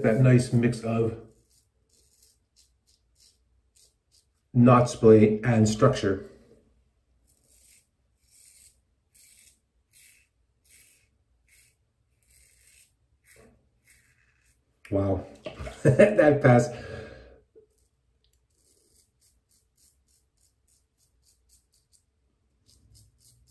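A razor scrapes softly across stubble.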